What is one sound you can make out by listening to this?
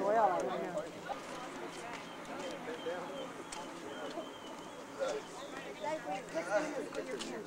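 Teenagers talk and chatter casually nearby, outdoors.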